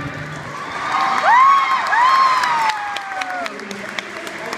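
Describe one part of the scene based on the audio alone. A crowd cheers and whoops in a large echoing arena.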